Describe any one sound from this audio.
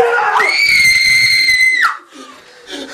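A young woman screams loudly and shrilly.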